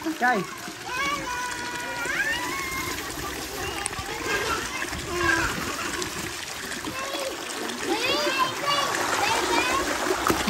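A woman speaks close by in a bright, playful voice.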